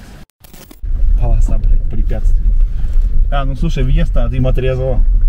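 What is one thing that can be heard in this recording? A man speaks close by inside the car.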